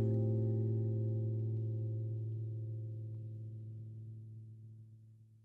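A young woman sings a long held note close to a microphone, slowly fading away.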